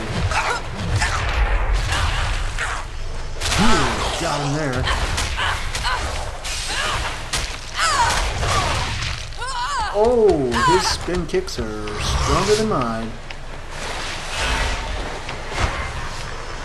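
Fight sound effects whoosh and thud throughout.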